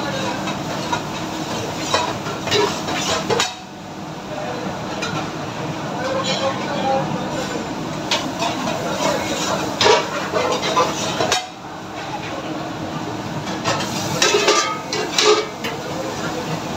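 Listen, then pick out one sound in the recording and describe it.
A metal ladle scrapes and clinks against a pan.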